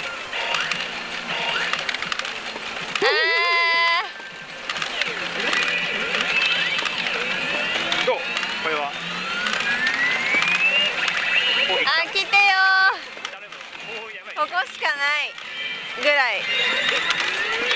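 A pachinko machine plays jingles and electronic sound effects.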